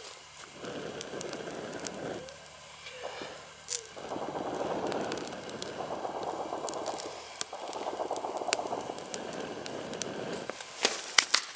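A person blows in long, steady breaths onto a small fire.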